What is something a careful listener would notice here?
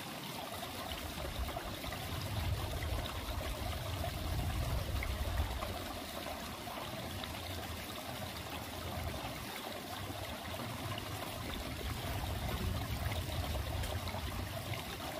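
Wind rustles through the trees outdoors.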